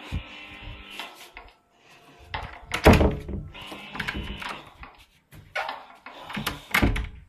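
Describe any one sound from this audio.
A door handle rattles and clicks.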